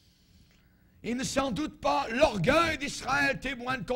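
An elderly man speaks loudly and with animation through a microphone.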